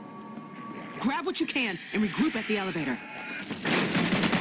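Zombies snarl and shriek.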